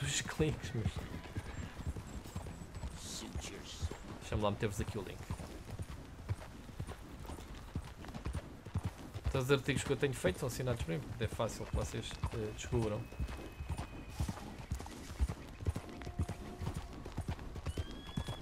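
Horse hooves clop steadily on a dirt path.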